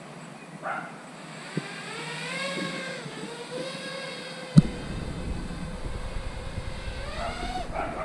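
A small drone's motors whine, rising and falling in pitch as it flies.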